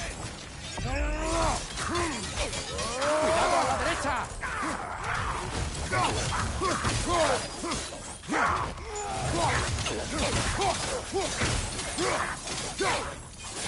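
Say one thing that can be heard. Flames roar and whoosh in bursts.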